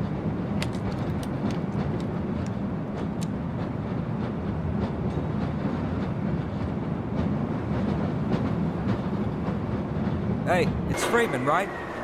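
A rail cart rumbles steadily along a track.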